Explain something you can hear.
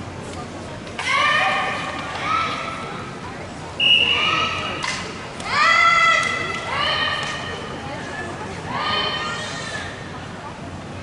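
Young women shout sharply in turn, echoing in a large hall.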